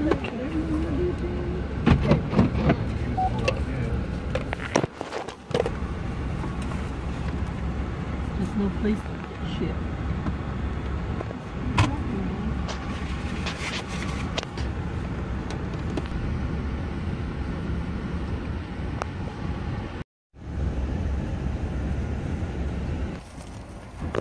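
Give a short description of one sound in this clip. A car engine hums steadily inside the car.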